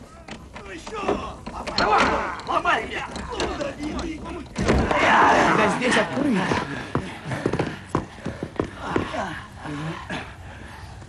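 A group of men burst in, talking and shouting over one another.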